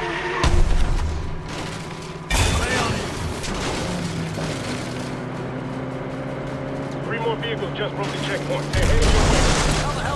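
Loud crashes and impacts thump nearby.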